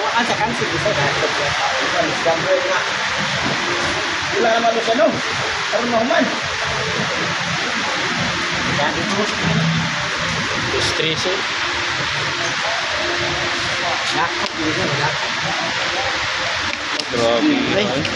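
Children talk and call out nearby.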